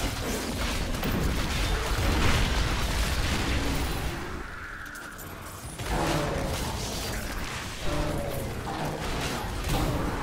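Game spells crackle and explode in rapid bursts.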